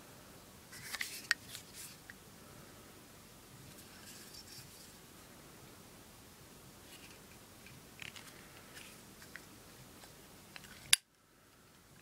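A small metal case clicks and taps as it is handled.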